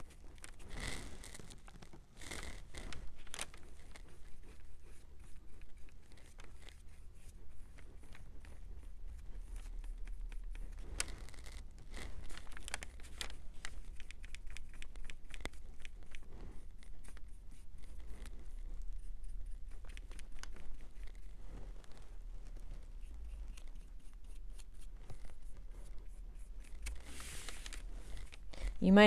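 Paper rustles under moving hands.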